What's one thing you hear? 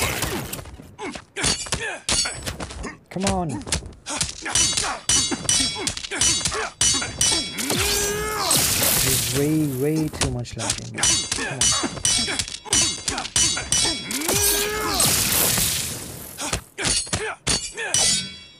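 Punches and kicks land with heavy thuds in quick bursts.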